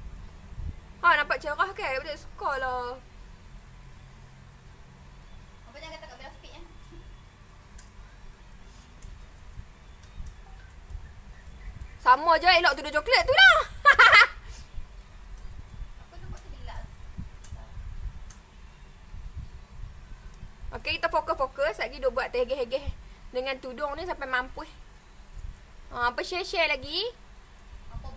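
A young woman talks close to the microphone in short bursts.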